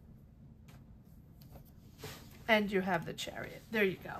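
A card slides softly onto a table.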